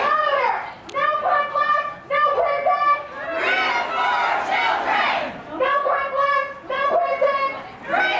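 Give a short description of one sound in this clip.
A crowd chants together in rhythm outdoors.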